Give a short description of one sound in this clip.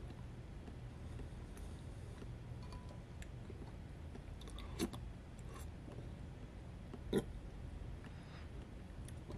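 A metal spoon clinks against a glass bowl.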